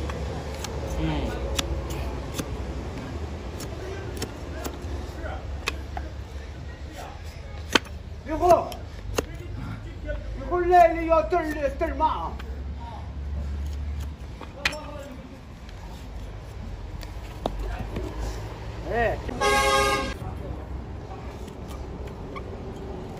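A knife scrapes and shaves a hard hoof with short, sharp clicks.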